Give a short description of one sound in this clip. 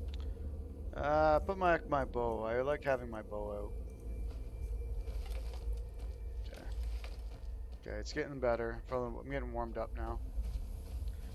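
A man speaks calmly and close to a microphone, in two short bursts.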